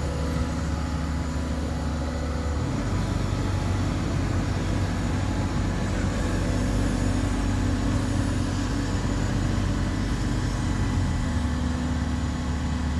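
Hydraulics whine as an excavator's arm swings and raises its bucket.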